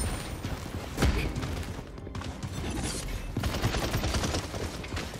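Gunfire and magic blasts crackle in a video game battle.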